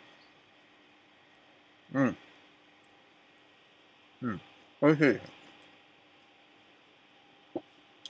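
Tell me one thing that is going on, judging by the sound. A man chews food with his mouth full.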